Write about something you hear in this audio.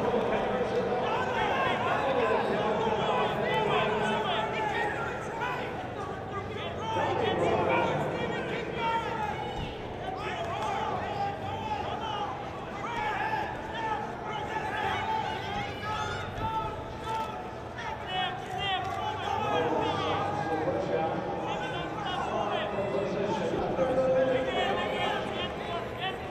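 A large crowd murmurs and shouts in a big echoing hall.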